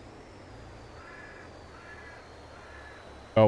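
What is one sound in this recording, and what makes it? A man speaks softly into a close microphone.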